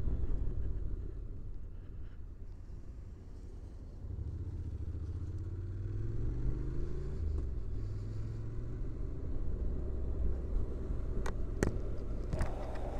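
Wind rumbles against the rider.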